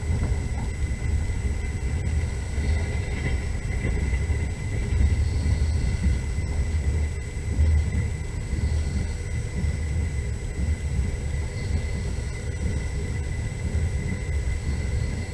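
Wheels knock over rail joints.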